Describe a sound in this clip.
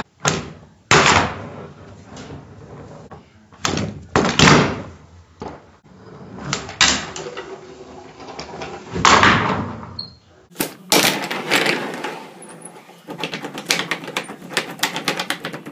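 A handboard's wheels roll across a wooden table.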